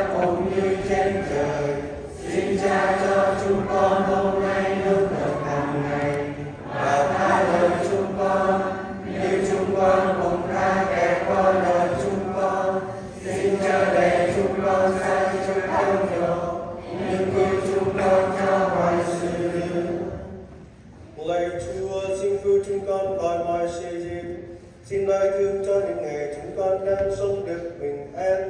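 A man chants a prayer through a loudspeaker in a large echoing hall.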